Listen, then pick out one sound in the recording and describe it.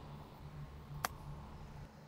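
A golf club clicks against a ball.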